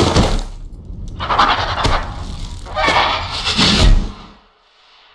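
A monster lets out loud, harsh shrieks close by.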